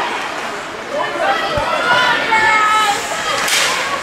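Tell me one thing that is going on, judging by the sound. Young players shout to each other in a large echoing rink.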